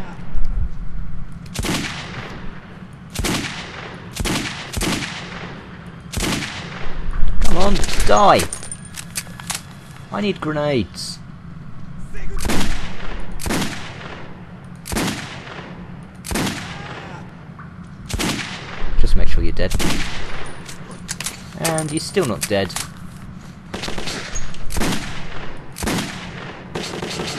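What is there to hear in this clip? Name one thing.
Gunshots fire repeatedly with sharp bangs and short echoes.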